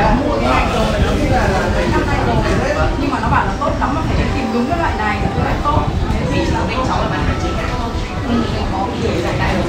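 Plastic packaging rustles in a man's hands.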